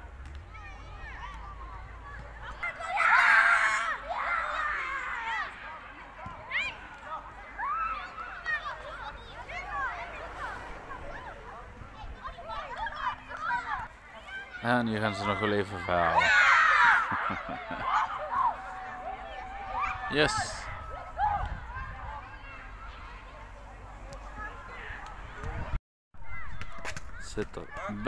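Children shout and call out to each other across an open outdoor pitch.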